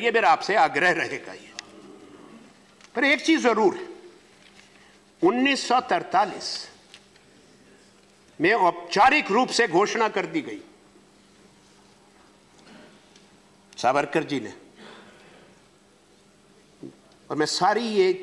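A middle-aged man speaks formally into a microphone in bursts, with pauses between phrases.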